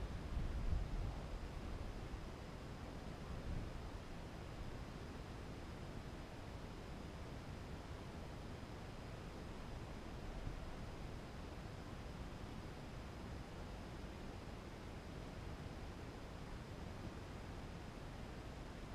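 Wind rumbles softly and steadily against the microphone, strongest in the first few seconds.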